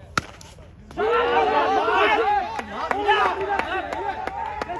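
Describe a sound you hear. Several young men shout and cheer loudly outdoors.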